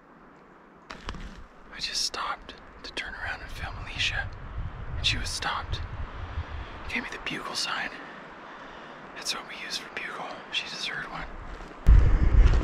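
A man talks calmly and close up, outdoors.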